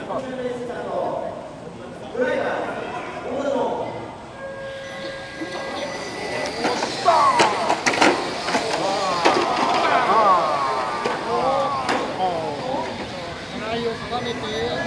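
Small electric model cars whine as they race around a track.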